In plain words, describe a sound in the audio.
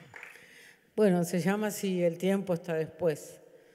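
A woman sings into a microphone with a sustained, wavering voice.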